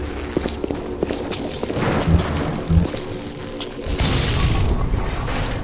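Electricity crackles and snaps in sharp bursts.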